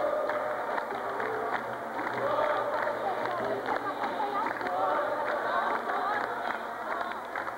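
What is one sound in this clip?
A group of people clap their hands in a steady rhythm.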